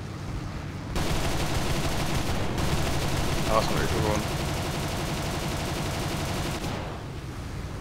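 Machine guns fire in a rapid rattling burst.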